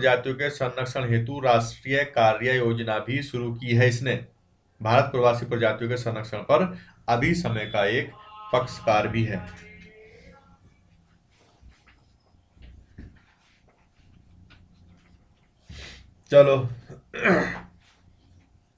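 A man talks calmly and clearly into a close microphone.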